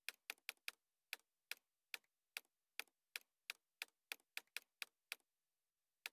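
Menu clicks tick quickly and repeatedly.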